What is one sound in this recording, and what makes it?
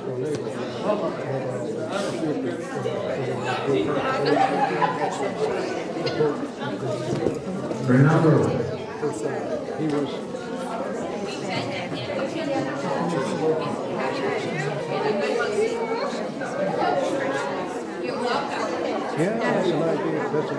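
A crowd of adults chatters and murmurs indoors.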